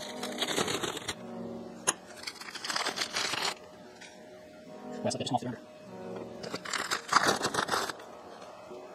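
Paper crinkles and rustles as it is unwrapped.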